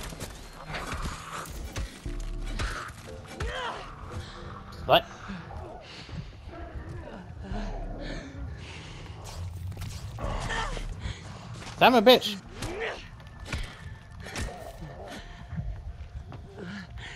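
Heavy blows strike flesh with wet thuds.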